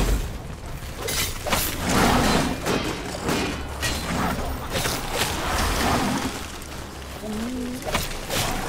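Blades clash and strike with sharp impacts.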